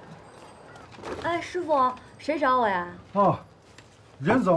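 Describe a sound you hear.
A young woman calls out nearby, asking a question.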